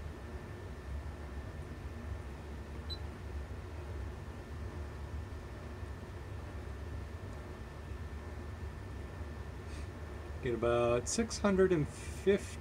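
An electronic device hums low and steadily.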